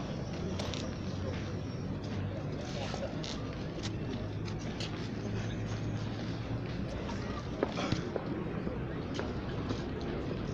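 A crowd murmurs outdoors in the open air.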